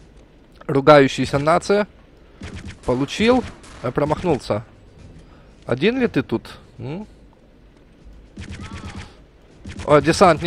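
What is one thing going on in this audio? A submachine gun fires short bursts.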